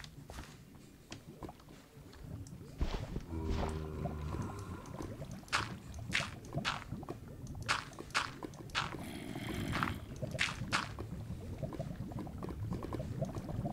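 Lava bubbles and pops.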